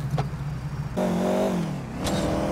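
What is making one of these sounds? A car engine hums louder and drops in pitch as the car drives off.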